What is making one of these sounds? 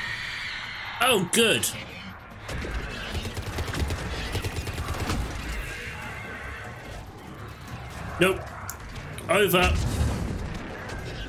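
Video game blasts boom and crackle.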